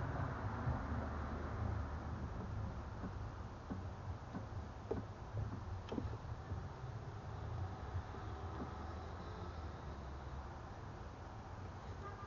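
Hoses and connectors click and rattle softly as hands handle them.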